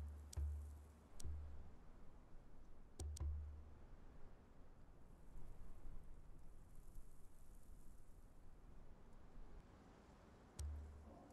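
Menu clicks sound, each followed by a short low thud.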